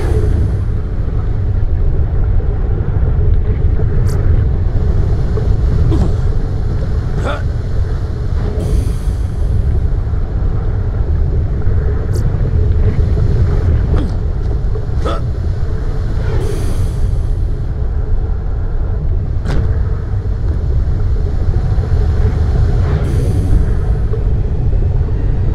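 Lava rumbles deeply and steadily.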